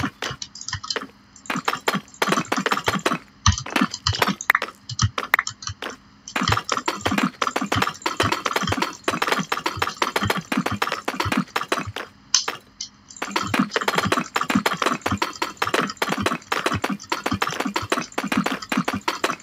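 Stone blocks thud softly as they are placed one after another.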